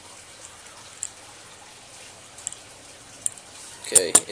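A fishing reel clicks softly as it is handled.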